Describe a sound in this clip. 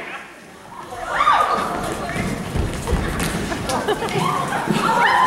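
A cast of young men and women sing together.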